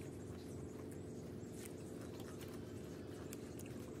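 A woman chews food close by.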